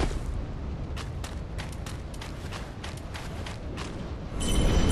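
Armoured footsteps crunch quickly through snow and brittle plants.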